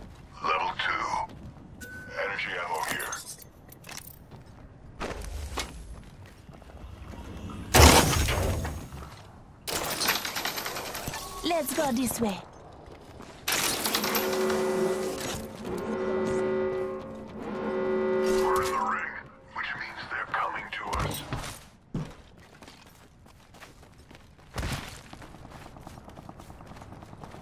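Footsteps thud quickly on metal and dirt.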